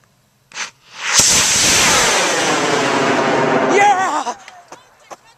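A rocket motor ignites with a sudden roar that rushes away and fades.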